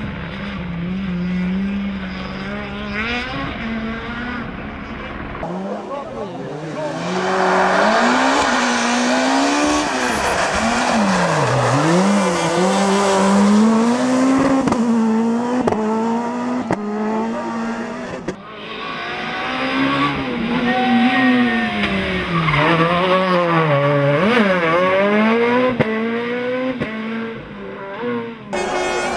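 A rally car engine revs hard, rising and falling in pitch as cars race by.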